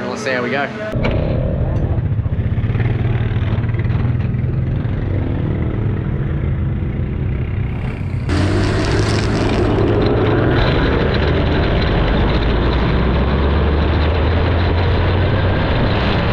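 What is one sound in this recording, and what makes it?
A race car engine rumbles and roars loudly.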